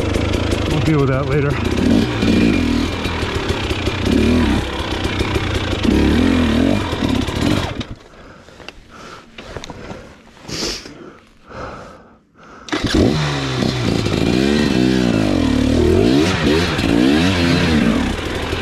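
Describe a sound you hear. A dirt bike engine revs up and down close by, dropping quiet for a few seconds.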